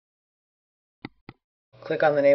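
A computer mouse clicks twice.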